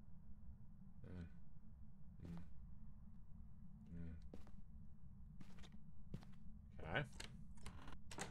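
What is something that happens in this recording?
A young woman speaks briefly and softly into a microphone.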